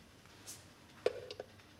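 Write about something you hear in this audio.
A plug clicks into a wall socket.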